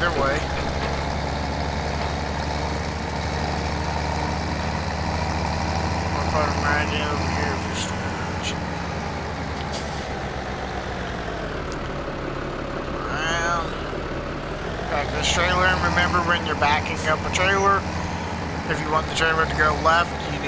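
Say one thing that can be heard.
A tractor engine hums steadily as the tractor drives along.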